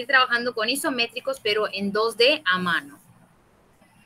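A young woman speaks with animation, close to a microphone over an online call.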